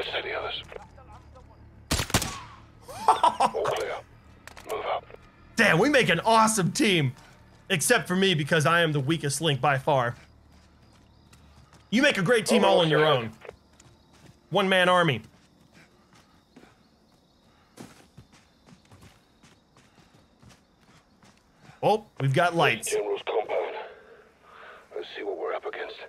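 A young man talks with animation close to a microphone, with bursts of excited exclaiming.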